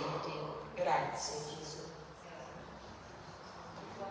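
A woman speaks calmly through a microphone in an echoing room.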